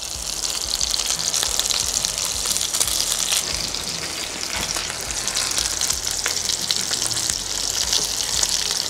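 Meat sizzles and crackles loudly in a hot frying pan.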